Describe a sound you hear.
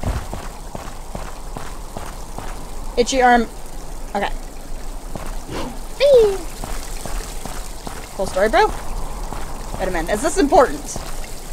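Quick footsteps tap on stone.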